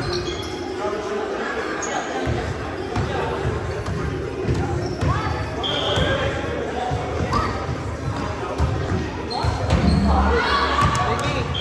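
Many people chatter and call out across a large echoing gym.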